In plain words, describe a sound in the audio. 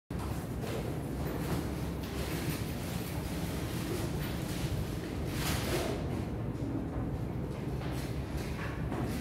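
Ceiling fans hum steadily.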